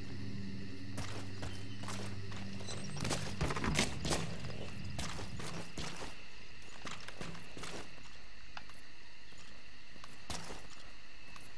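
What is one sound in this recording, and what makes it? Footsteps shuffle and scrape on a hard floor.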